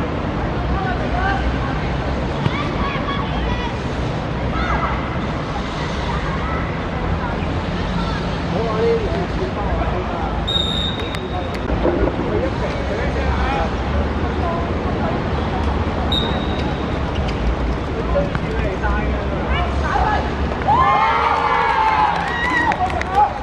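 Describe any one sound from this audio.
Children shout and call out.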